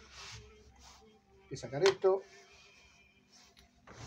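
Metal parts of a sewing machine click and rattle as they are handled.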